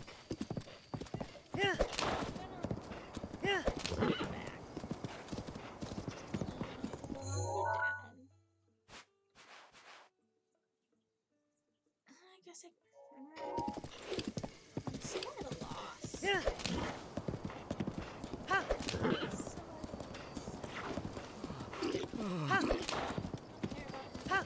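A horse gallops with thudding hooves.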